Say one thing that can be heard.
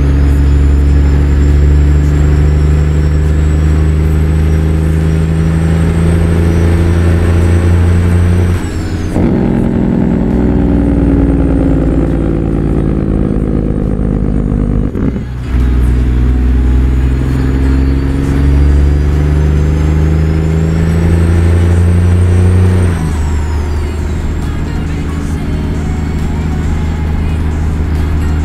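A heavy truck engine rumbles steadily, rising and falling in pitch as gears change.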